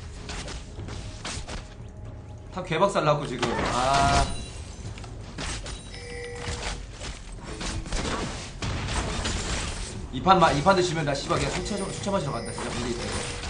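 Game sound effects clash and zap in a fast battle.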